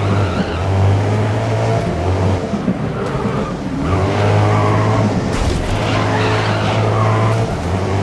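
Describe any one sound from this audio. Tyres screech on the road as the car corners.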